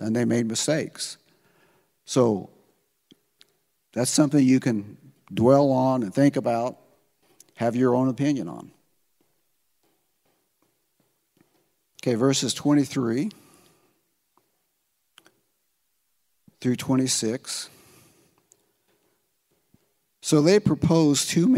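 An elderly man speaks through a microphone in bursts with pauses.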